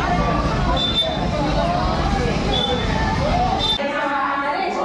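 A crowd of women chatters outdoors.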